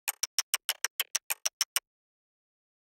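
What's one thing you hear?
A metronome clicks quickly and steadily, then stops.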